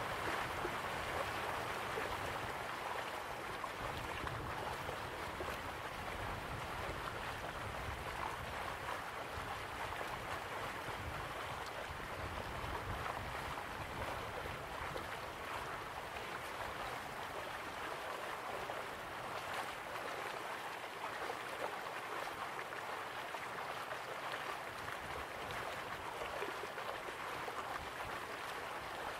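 Water splashes steadily into a pool from a small waterfall.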